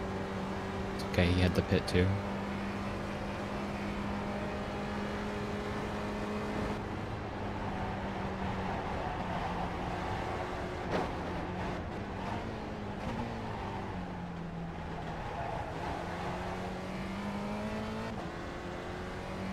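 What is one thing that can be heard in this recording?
A racing car engine drones steadily, its pitch rising and falling with the throttle.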